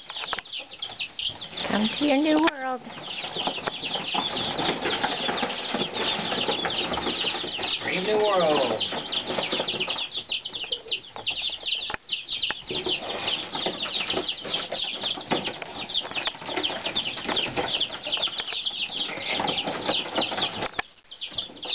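Many chicks peep loudly and constantly close by.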